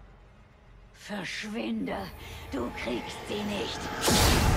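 A woman shouts angrily.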